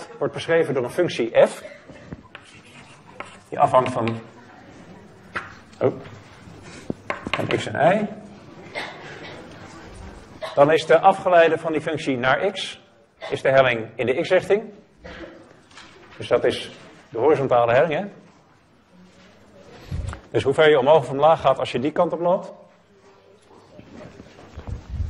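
A young man lectures with animation in a room with a slight echo.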